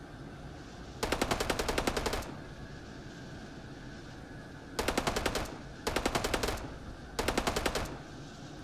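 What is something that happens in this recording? A heavy gun fires in short, rapid bursts.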